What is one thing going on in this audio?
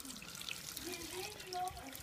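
Water runs from a tap.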